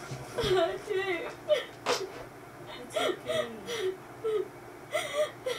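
A girl sobs and whimpers in distress, heard through a loudspeaker.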